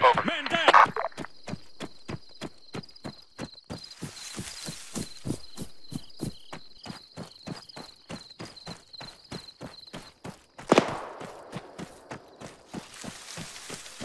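Footsteps crunch quickly over dry ground and brush.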